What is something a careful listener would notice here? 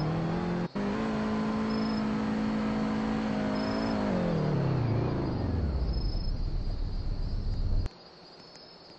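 A car engine hums steadily, then winds down and cuts off.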